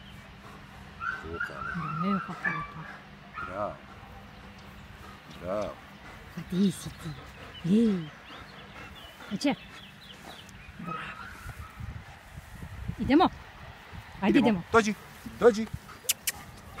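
A man talks calmly close by.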